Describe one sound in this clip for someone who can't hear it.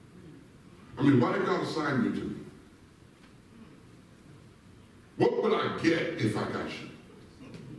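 A man speaks into a microphone in a large echoing hall, with long pauses between phrases.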